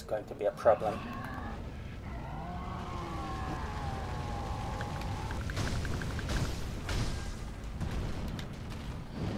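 A huge beast roars and growls.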